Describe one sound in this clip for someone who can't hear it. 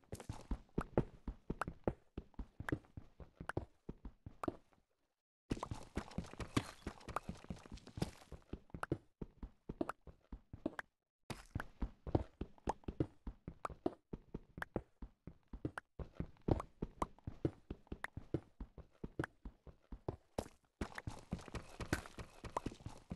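A pickaxe chips rapidly at stone, with crumbling thuds.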